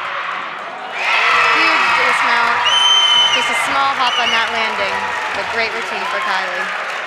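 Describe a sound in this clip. A group of young women cheer and shout loudly.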